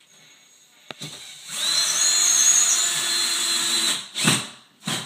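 A power drill whirs, driving a screw.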